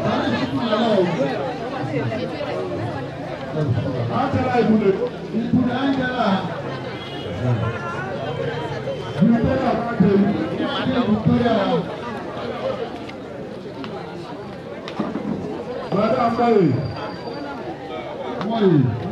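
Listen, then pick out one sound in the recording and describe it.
A large crowd of women chatters and murmurs outdoors.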